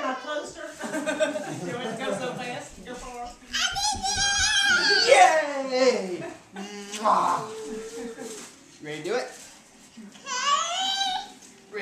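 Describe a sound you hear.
Women laugh nearby.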